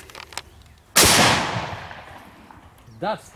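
A pistol shot cracks loudly outdoors and echoes away.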